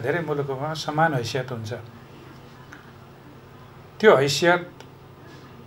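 An older man speaks calmly and close to a microphone.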